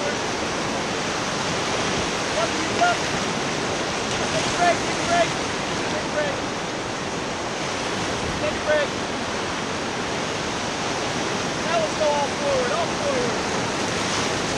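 Water splashes against an inflatable raft.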